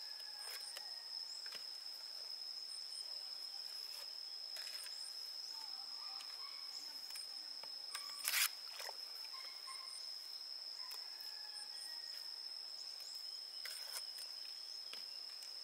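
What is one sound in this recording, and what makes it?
A trowel scrapes wet cement in a metal bucket.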